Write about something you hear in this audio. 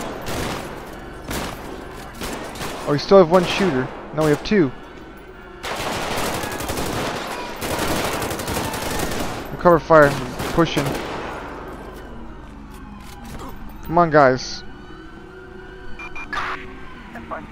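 Gunshots crack in rapid bursts outdoors.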